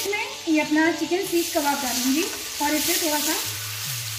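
Pieces of food drop into a sizzling pan.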